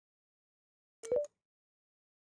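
A keypad beeps once.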